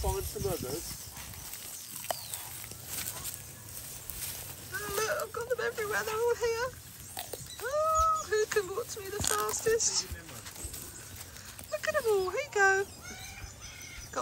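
Dry leaves rustle as tortoises shuffle over them.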